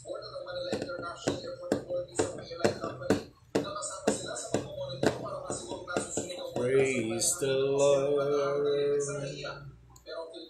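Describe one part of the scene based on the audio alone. A man sings close by.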